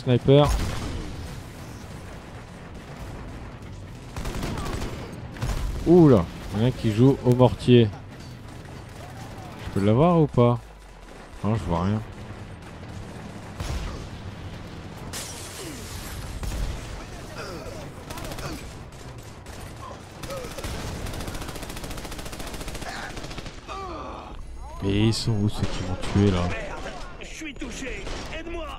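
Gunshots crack and boom in a battle.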